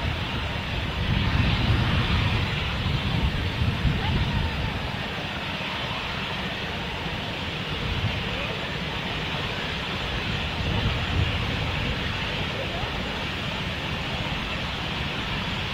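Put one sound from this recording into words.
A jet airliner roars loudly as it takes off and climbs away.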